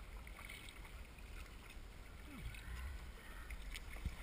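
A kayak paddle dips and splashes through the water.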